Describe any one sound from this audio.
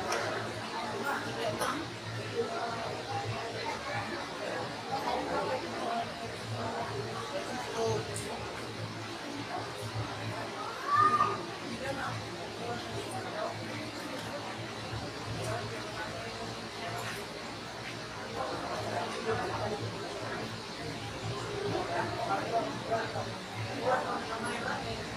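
A crowd of people chatters and murmurs in the background.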